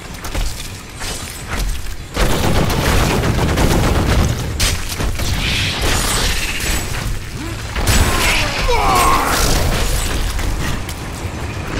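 A giant spider screeches and hisses.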